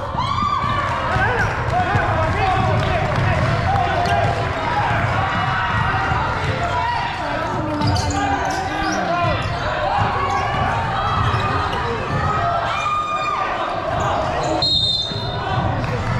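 Young men shout and call out to each other across the hall.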